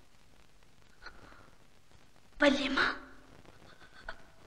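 A young woman speaks weakly and softly.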